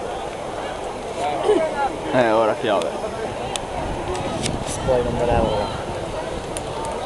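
A large stadium crowd murmurs and chatters steadily in the open air.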